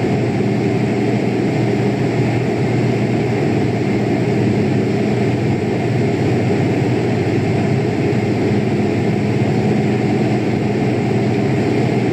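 Jet engines drone steadily with a low, rushing hum.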